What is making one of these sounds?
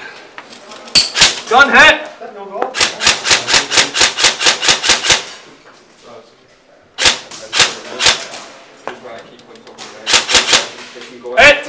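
Guns fire rapid bursts of shots close by.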